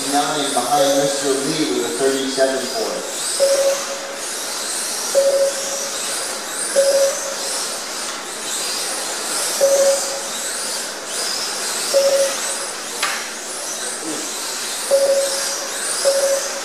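Small electric racing cars whine at high pitch as they speed around a track.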